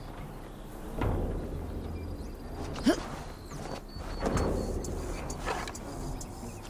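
Footsteps thud on grass and stone.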